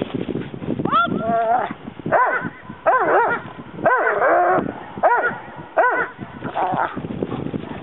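A man speaks with animation to a dog outdoors.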